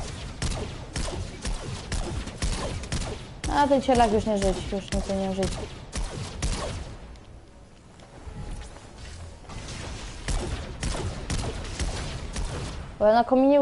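Rapid gunshots ring out in a video game.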